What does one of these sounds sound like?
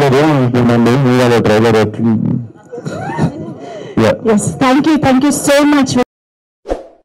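A young man speaks with animation into a microphone over loudspeakers.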